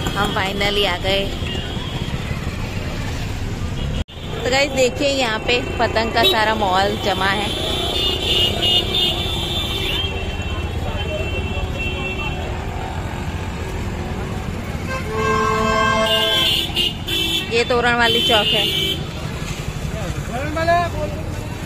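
Motorbike and rickshaw engines putter past on a busy street.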